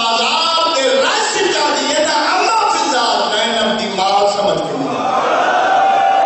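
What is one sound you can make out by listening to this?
A man speaks passionately into a microphone, heard through loudspeakers with echo.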